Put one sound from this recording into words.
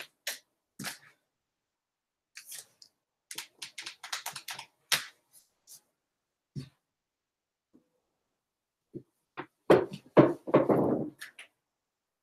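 Books knock and shuffle on shelves close by.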